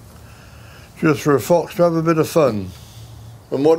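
An elderly man speaks calmly and slowly, close by.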